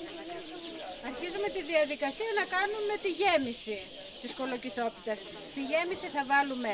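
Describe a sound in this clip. A middle-aged woman speaks close into a microphone with animation.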